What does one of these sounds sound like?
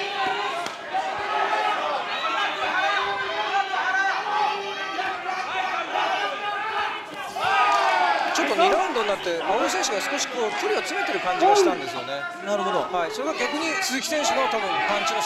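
Kickboxers' kicks and punches thud against bare bodies.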